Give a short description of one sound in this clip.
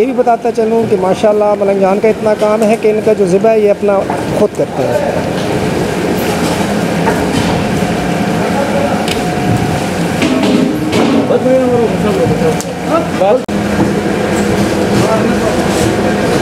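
Water pours from a hose and splashes onto raw meat.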